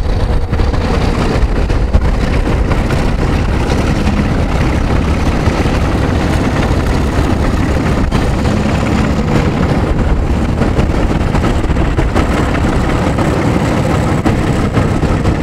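Locomotive wheels clatter over rail joints.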